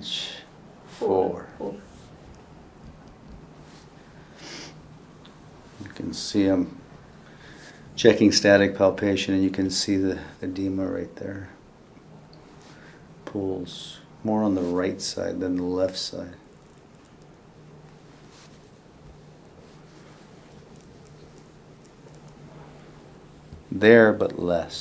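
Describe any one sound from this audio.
A man speaks calmly and explains nearby, with pauses.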